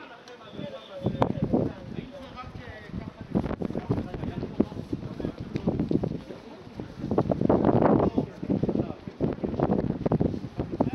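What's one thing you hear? Footsteps scuff on stone paving.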